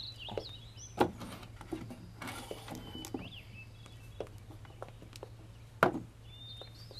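A wooden chest knocks as it is lifted down and set on the floor.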